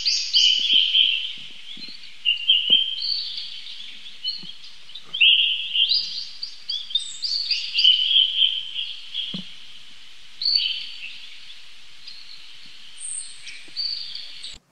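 A baby monkey squeaks and chirps in high, repeated calls close by.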